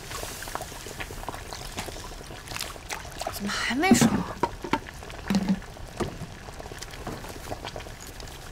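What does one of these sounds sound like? A wooden paddle scrapes and knocks against a metal pot.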